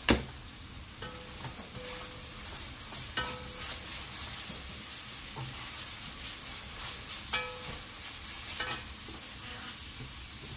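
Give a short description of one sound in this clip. Metal tongs scrape and clink against a pot while stirring food.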